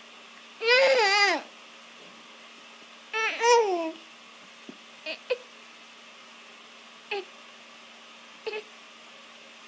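A baby squeals and babbles close by.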